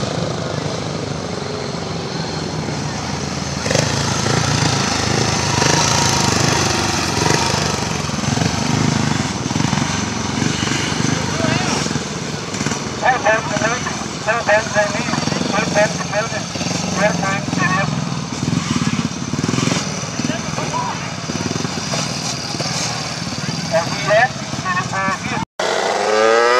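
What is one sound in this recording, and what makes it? A motorcycle engine roars and whines as it races around a dirt track.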